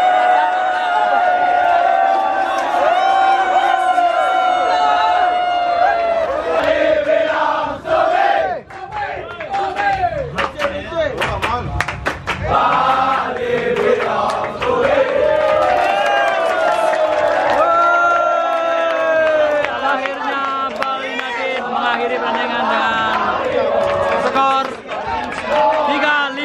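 A large crowd of young men sings and chants loudly together outdoors.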